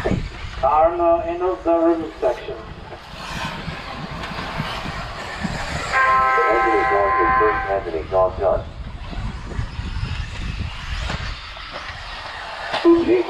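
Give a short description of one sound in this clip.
Small electric model cars whine as they race.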